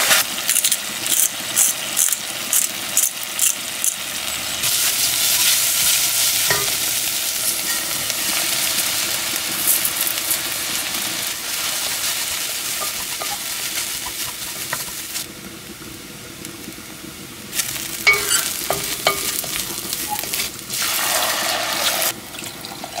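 Mushrooms sizzle in a hot pot.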